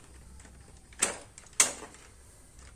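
Plastic parts click and snap into place.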